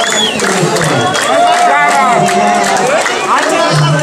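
A crowd claps their hands.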